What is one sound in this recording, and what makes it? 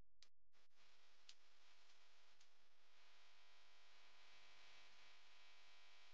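Plastic sheeting crinkles softly.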